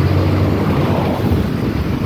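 A car passes close by with a whoosh.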